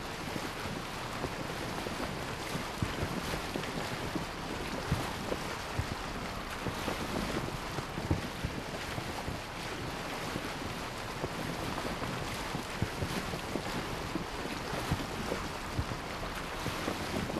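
Water splashes and rushes steadily against the hull of a moving boat.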